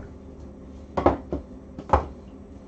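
Glass bottles knock and clink together.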